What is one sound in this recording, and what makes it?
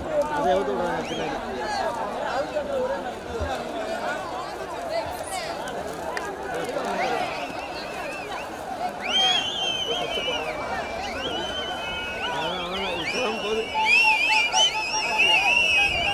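A crowd of men chatters and shouts outdoors.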